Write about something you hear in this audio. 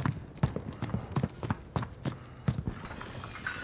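Footsteps thud on a wooden floor at a steady pace.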